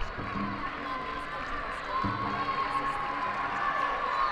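A young woman speaks cheerfully into a microphone.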